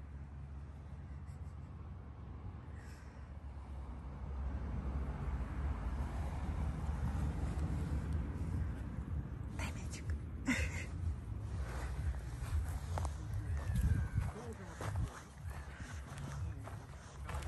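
A small dog's paws patter across sandy ground.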